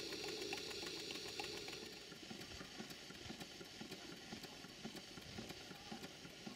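A small steam engine chuffs rapidly with a rhythmic beat.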